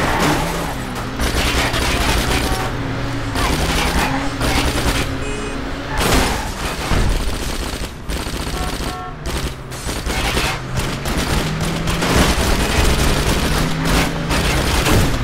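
A car engine revs hard at speed.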